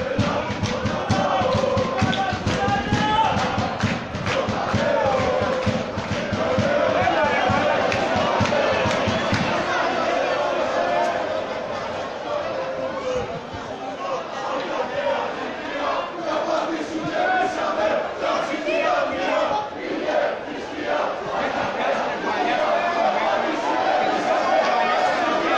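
A crowd of spectators chants and cheers in an open-air stadium.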